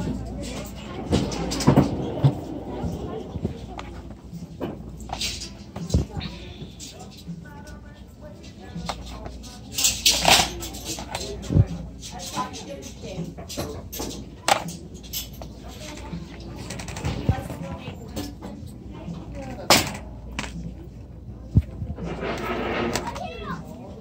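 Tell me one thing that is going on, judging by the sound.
Plastic game cases clatter and tap as a hand picks them up and puts them down.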